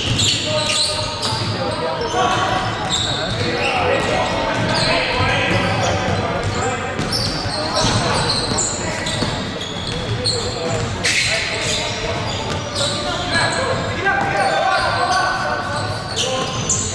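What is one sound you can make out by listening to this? Sneakers squeak sharply on a wooden court in an echoing hall.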